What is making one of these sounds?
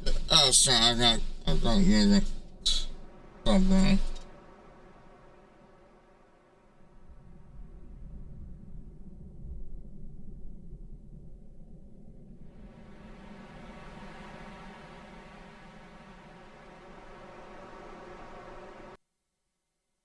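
A soft, humming electronic drone plays with swelling tones.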